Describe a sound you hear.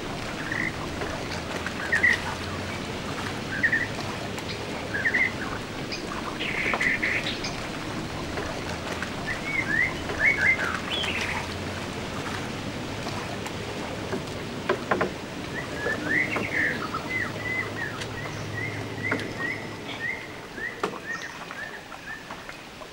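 Water laps gently against stone steps.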